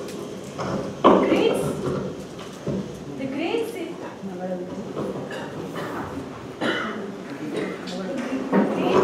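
A young woman speaks into a microphone over a loudspeaker.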